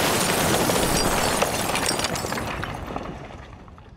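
Bricks clatter and tumble onto the ground.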